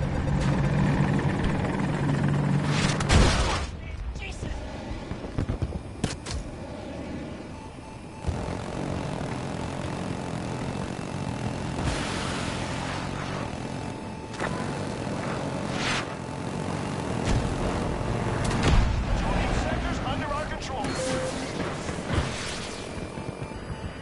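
Helicopter rotors thump steadily.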